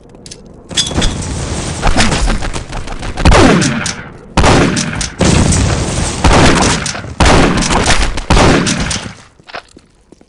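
A shotgun fires in loud, quick blasts.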